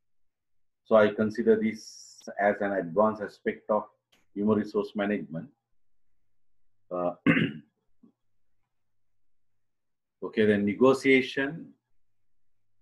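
A middle-aged man speaks calmly through an online call microphone, with pauses.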